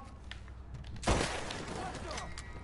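A gunshot cracks loudly and echoes.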